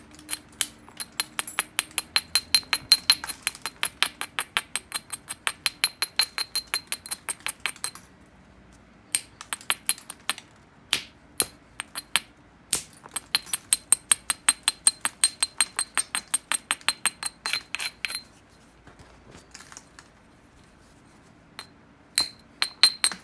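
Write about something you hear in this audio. A stone tool taps and scrapes rapidly against the edge of a glassy rock, chipping it.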